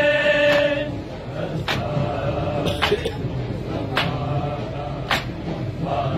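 A crowd of men chant in response.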